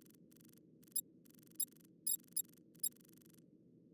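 Short menu clicks tick a few times.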